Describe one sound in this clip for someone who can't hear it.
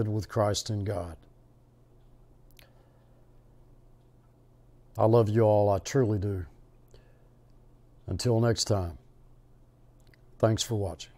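A middle-aged man speaks calmly and slowly, close to a microphone, with long pauses.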